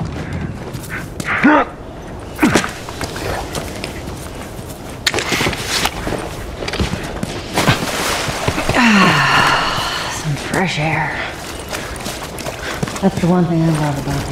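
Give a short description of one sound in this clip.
Footsteps crunch through grass and undergrowth.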